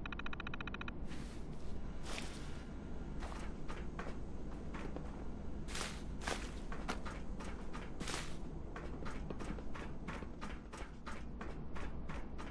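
Footsteps clank on metal floors and stairs.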